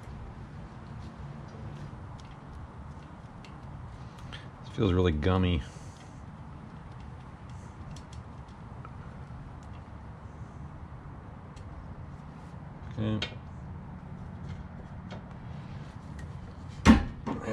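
Small metal parts click and tap as hands work on an engine.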